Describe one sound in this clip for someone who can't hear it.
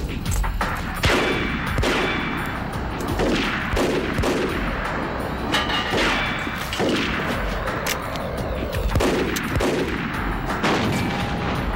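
Guns fire repeated sharp shots with ricochets whining off.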